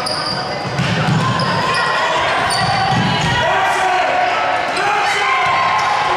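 Players call out to each other across the court.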